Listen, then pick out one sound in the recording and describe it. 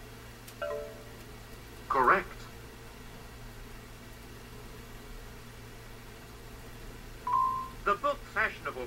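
A video game's electronic beeps sound briefly.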